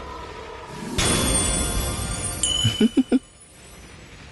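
A bright chime rings out in celebration.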